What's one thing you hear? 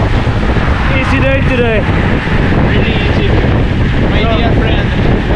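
A man speaks casually while riding, close by and partly covered by wind.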